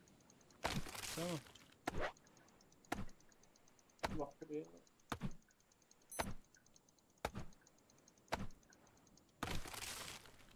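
An axe chops into a tree trunk with sharp, regular thuds.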